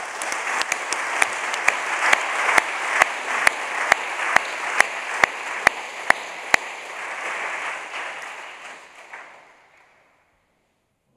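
An audience applauds in a large hall, then the clapping fades away.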